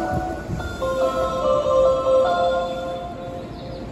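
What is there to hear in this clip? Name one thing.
A train's electric motors whine as it comes to a stop.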